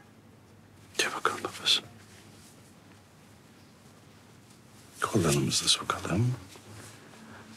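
A man speaks softly and with emotion, close by.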